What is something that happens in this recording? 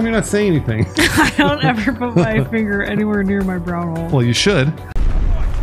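A young woman laughs and talks into a close microphone.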